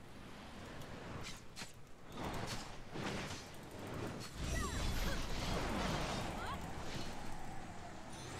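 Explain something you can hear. Magic blasts and impacts crash in a game battle.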